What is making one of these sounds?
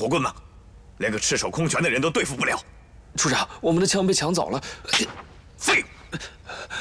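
A middle-aged man speaks with animation, scolding loudly.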